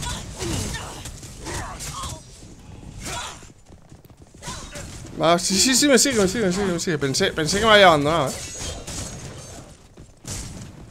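Game effects whoosh and blast.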